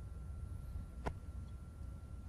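A ball is set down on the table with a soft click.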